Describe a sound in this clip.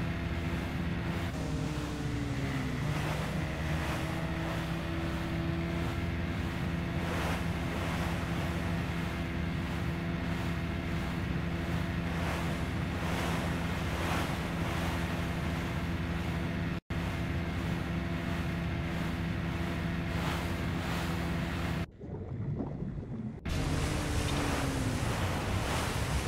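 Water splashes and sprays against a speeding boat's hull.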